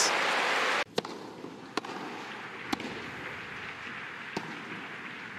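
A tennis ball bounces repeatedly on a grass court.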